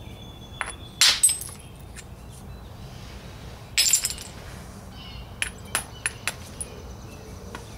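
A hammerstone strikes stone with sharp, cracking clicks.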